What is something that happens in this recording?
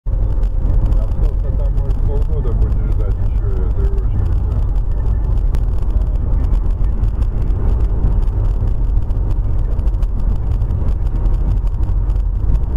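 A car engine hums and tyres roll steadily on the road.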